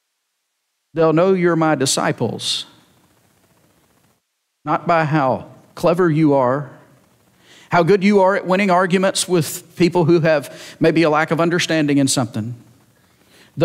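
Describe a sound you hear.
A man preaches through a microphone, speaking calmly with pauses.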